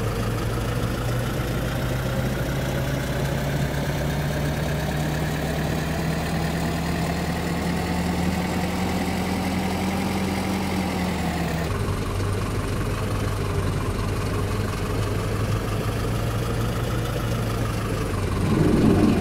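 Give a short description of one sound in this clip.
A city bus engine drones as the bus drives, rising slowly in pitch.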